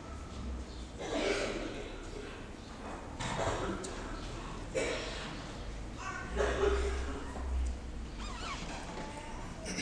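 A young man reads aloud through a microphone in a large echoing hall.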